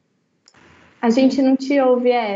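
A young woman speaks with animation over an online call.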